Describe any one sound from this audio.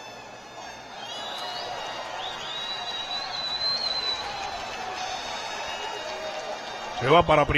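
A crowd cheers and whistles outdoors.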